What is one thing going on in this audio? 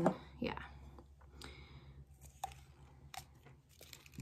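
Small plastic items click and tap in a woman's hands.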